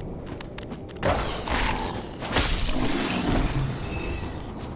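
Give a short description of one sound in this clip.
A sword strikes and slashes with heavy metallic blows.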